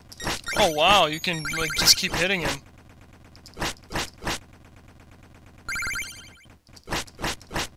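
Video game coins chime as they are collected.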